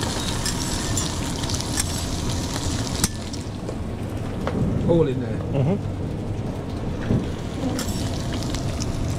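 Eggs sizzle on a hot griddle.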